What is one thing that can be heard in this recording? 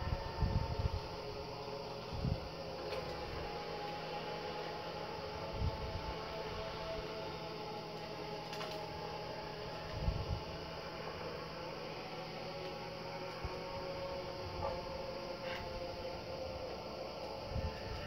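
Eerie, droning game music plays steadily from a television speaker.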